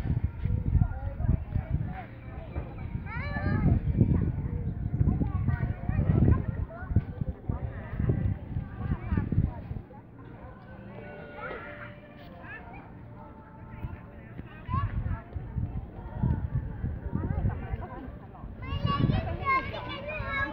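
A young child talks and babbles nearby.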